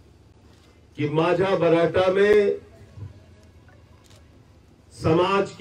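A middle-aged man speaks forcefully into a microphone, outdoors.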